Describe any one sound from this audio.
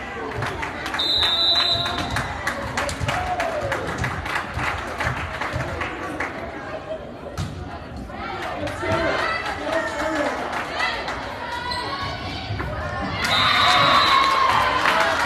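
Players' shoes squeak sharply on the court.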